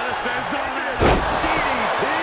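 A wrestler's body slams hard onto a ring mat.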